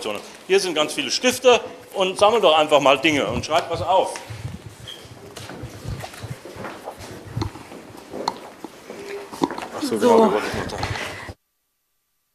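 Several men and women chatter and talk over one another nearby.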